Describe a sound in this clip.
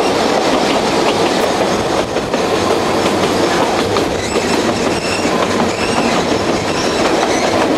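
A train rumbles and clatters steadily along the tracks.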